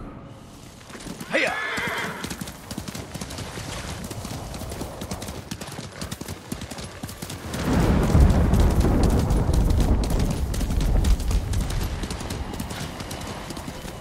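A horse gallops with rapid hoofbeats.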